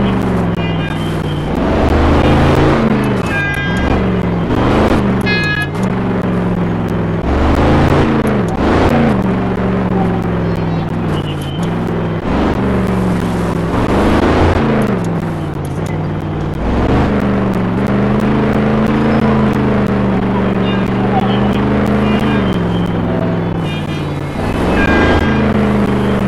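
Flames burst from a truck's exhaust with a whooshing sound.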